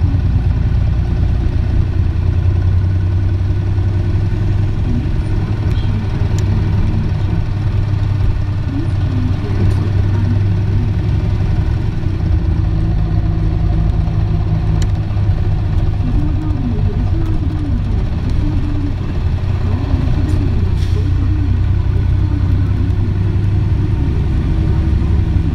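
A bus engine idles with a steady low rumble.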